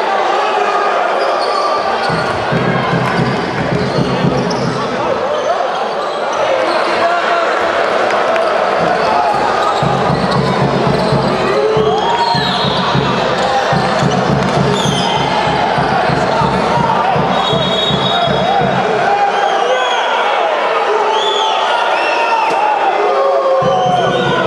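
A crowd chatters and cheers throughout in a large echoing hall.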